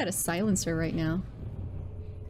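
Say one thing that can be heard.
A young woman speaks with animation into a close microphone.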